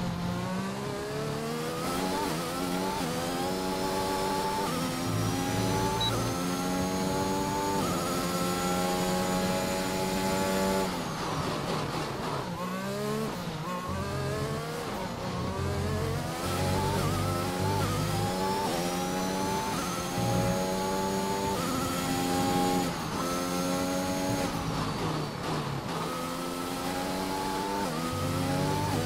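A racing car engine screams and rises in pitch as it revs up through the gears, dropping briefly at each shift.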